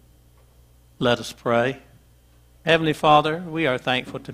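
An elderly man speaks calmly into a microphone, heard through loudspeakers in a large echoing hall.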